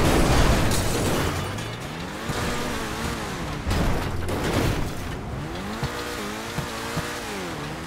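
A car engine revs and roars as the car speeds up and slows down.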